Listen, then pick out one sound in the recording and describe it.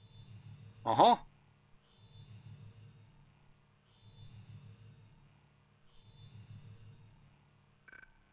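A soft electronic chime with a low hum sounds every two seconds.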